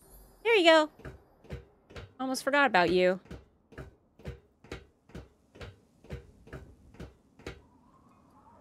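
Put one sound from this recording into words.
Footsteps clang steadily on a metal walkway.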